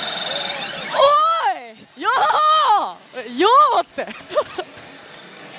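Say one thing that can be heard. A young woman exclaims excitedly into a close microphone.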